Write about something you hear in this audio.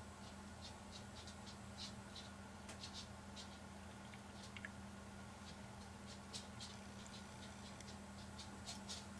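Beer pours from a bottle into a glass, fizzing and crackling as foam rises.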